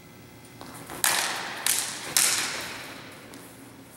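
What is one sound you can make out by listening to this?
Swords clash sharply several times, ringing in a large echoing hall.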